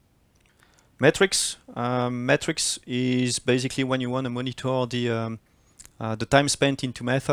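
A man speaks calmly into a microphone.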